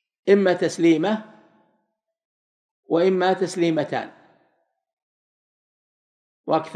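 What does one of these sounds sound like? A man recites in a slow, melodic chanting voice through a microphone, in short phrases with pauses.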